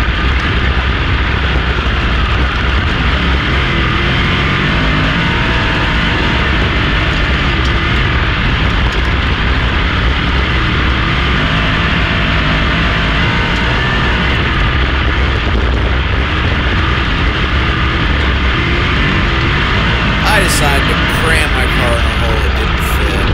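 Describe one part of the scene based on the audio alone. Other race car engines roar nearby.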